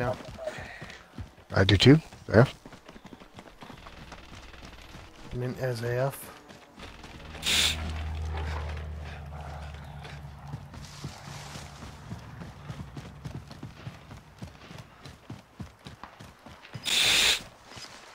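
Footsteps run quickly over grass and gravel.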